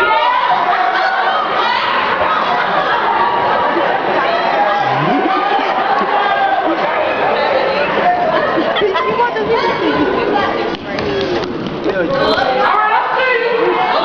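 An audience cheers and shouts close by.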